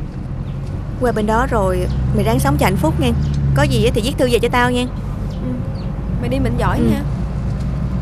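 A young woman speaks emotionally, close by.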